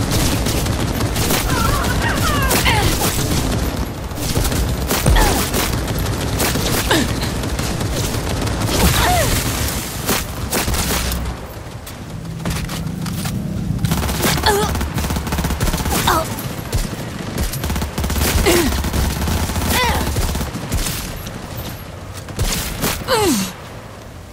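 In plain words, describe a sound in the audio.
A rifle fires single shots, each with a sharp crack.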